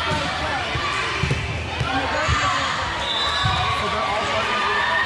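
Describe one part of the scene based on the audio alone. Voices of players and spectators chatter in a large echoing hall.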